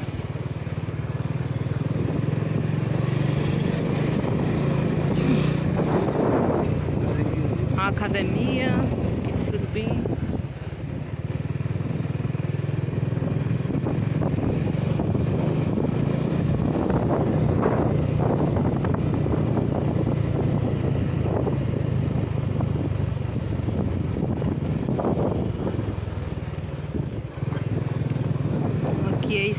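Wind rushes past while riding outdoors.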